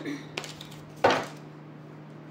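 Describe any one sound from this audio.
A hand sets something down on a table with a soft knock.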